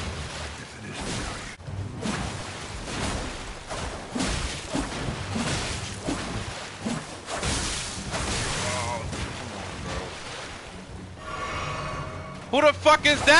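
Water splashes as footsteps wade through shallow water.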